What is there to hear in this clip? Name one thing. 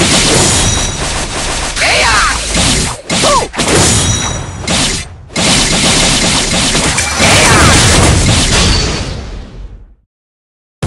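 Sword slashes whoosh and strike in quick succession.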